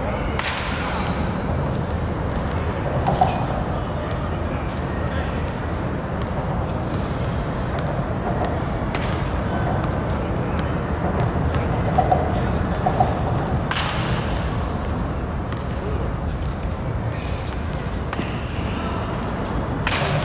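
A bat cracks against a baseball again and again.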